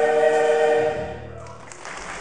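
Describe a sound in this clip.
A large choir sings a sustained final chord in a large echoing hall.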